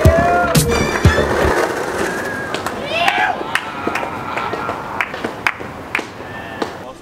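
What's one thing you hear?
Skateboard wheels roll and rattle over paving stones outdoors.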